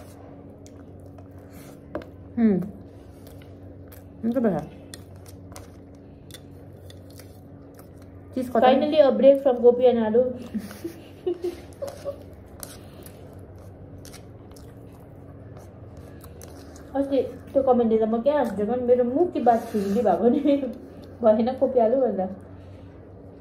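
A young girl chews and smacks her lips softly.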